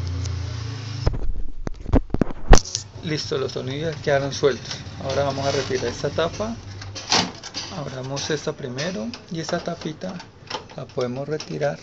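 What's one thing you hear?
A plastic printer panel clicks and knocks as it is handled.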